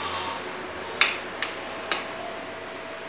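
Light switches click several times.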